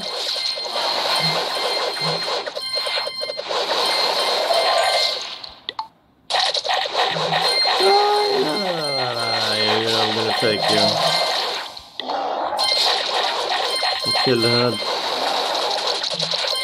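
Rapid electronic blasts and crackles of a video game battle play on and on.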